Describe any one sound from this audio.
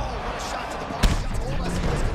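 A heavy kick lands with a loud thud.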